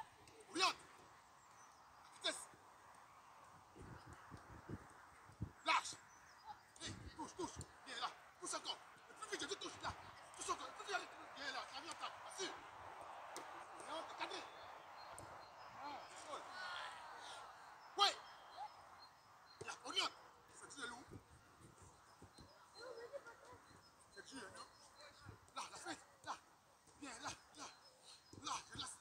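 A football is kicked with sharp thuds, outdoors.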